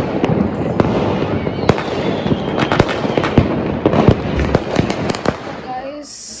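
Fireworks crackle and bang in the distance.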